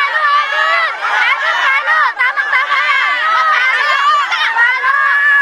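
A crowd of women cheer and shout excitedly outdoors.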